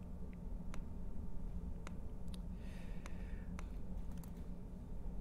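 Laptop keys click now and then.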